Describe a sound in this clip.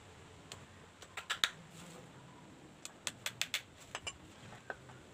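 A hammer taps sharply on wood.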